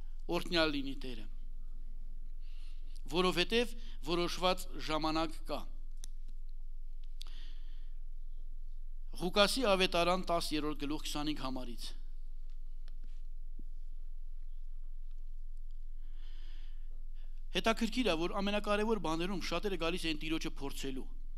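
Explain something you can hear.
A middle-aged man speaks calmly into a microphone, with pauses, heard through a loudspeaker.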